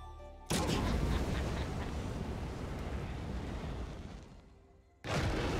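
A fiery whoosh roars in a burst.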